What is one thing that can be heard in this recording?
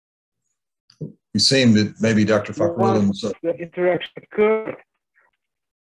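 A man speaks calmly through an online call microphone.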